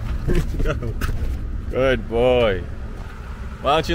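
A dog jumps up onto a car seat with a soft thump.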